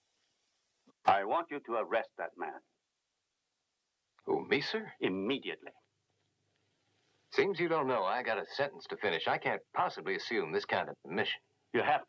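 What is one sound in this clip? A man speaks firmly at close range.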